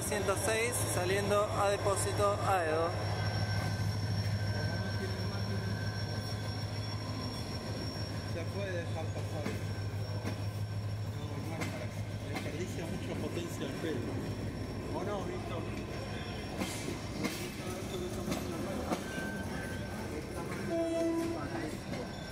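Train carriages roll slowly past on the rails, clicking and clattering.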